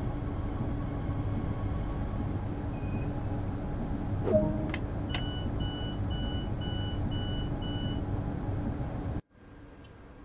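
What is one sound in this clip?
An electric train hums steadily from inside the driver's cab.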